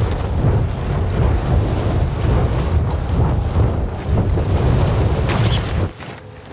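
Wind rushes loudly and steadily, then drops away abruptly.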